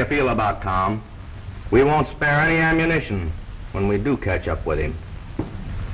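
A man talks calmly at close range.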